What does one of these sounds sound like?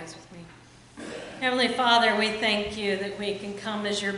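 A woman sings loudly with a steady voice.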